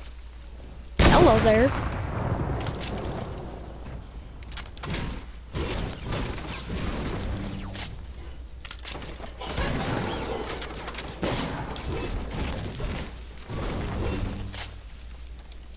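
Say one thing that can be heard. A pickaxe chops repeatedly against trees.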